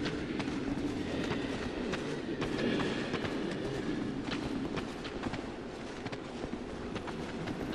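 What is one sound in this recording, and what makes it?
Armoured footsteps thud on wooden boards.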